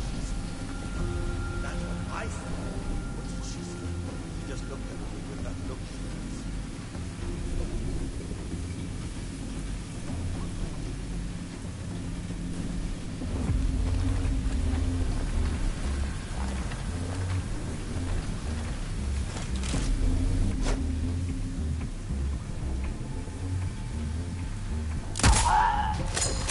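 A large fan hums with a steady low drone.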